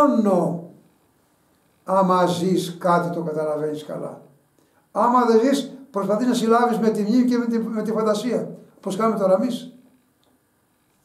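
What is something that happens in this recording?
An elderly man speaks with animation close by.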